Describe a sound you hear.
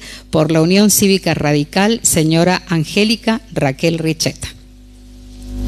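A woman speaks calmly into a microphone, heard through loudspeakers.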